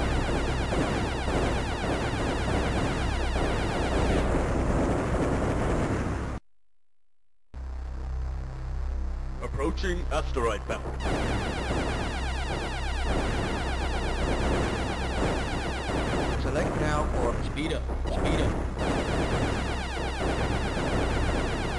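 Laser shots fire in rapid bursts.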